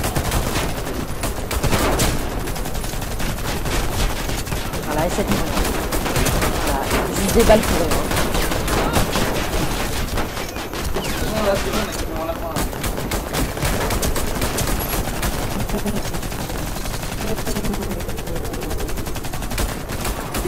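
Pistol shots crack rapidly, one after another.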